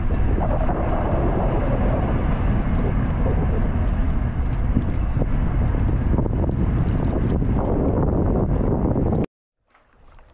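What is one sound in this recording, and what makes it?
Wind buffets loudly outdoors by open water.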